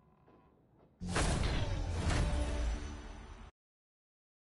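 A loud, bright victory fanfare bursts out and then cuts off.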